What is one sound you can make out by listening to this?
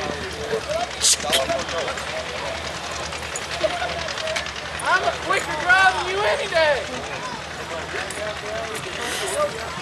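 A man speaks loudly and with animation outdoors.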